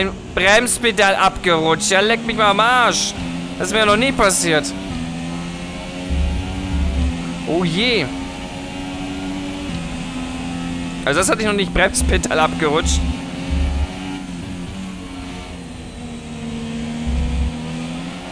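A racing car engine roars loudly, revving up and down as it shifts gears.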